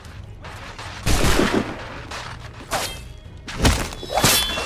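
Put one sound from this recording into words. Muskets fire in loud, sharp bangs.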